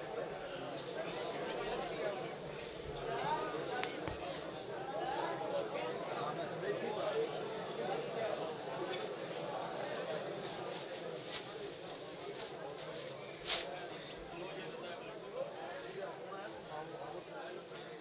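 Men beat their chests with their hands in rhythm.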